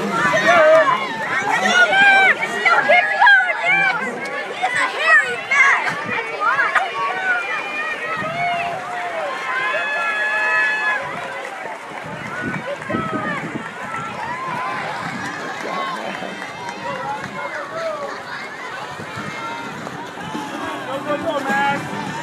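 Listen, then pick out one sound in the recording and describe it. A crowd of children and adults cheers and shouts loudly.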